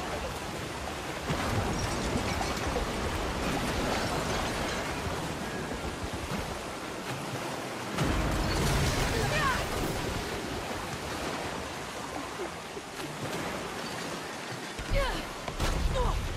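Floodwater rushes and roars loudly.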